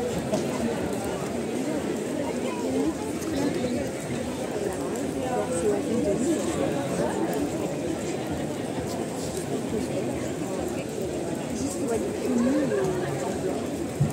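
A bonfire roars and crackles.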